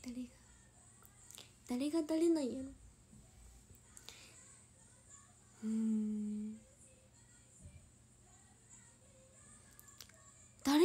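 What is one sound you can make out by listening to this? A young woman speaks casually and close to a microphone.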